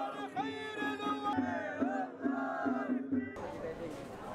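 A group of men chant loudly together.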